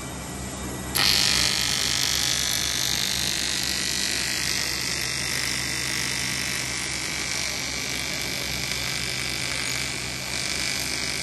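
A welding arc crackles and buzzes steadily.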